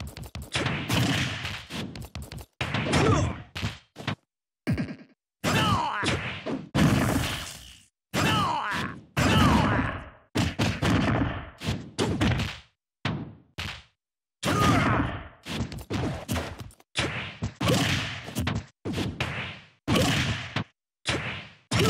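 Heavy punches and kicks thud against a sandbag in quick bursts.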